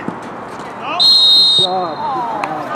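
A referee's whistle blows one sharp blast.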